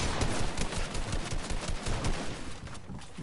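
Rapid gunshots fire in quick bursts.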